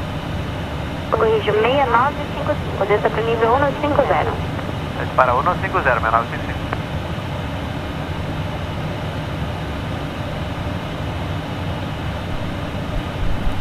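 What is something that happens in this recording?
A steady low roar of aircraft engines and cabin noise fills the air.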